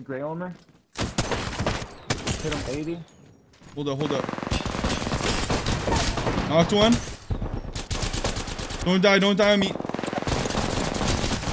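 Gunfire rattles in rapid bursts from a game.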